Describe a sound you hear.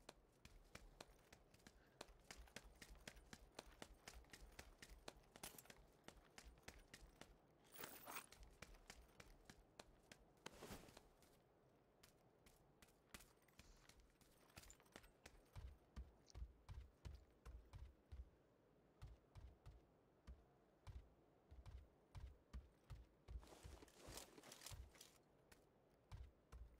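Quick footsteps thud and tap on hard ground and wooden stairs.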